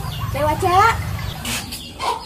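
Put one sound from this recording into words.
A young woman calls out.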